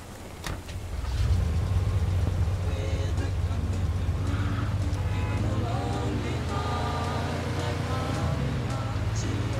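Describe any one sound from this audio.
A car engine rumbles steadily as the car drives along.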